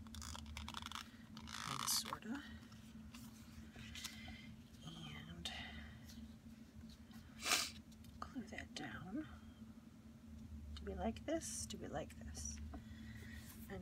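Paper rustles and crinkles under handling.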